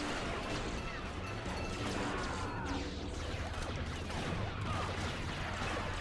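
Laser blasters fire in rapid bursts.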